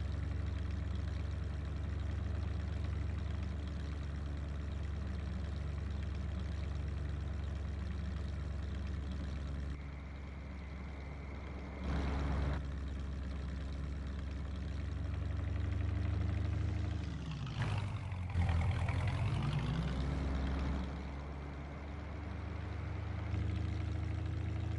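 A car engine hums steadily, rising and falling as the car drives.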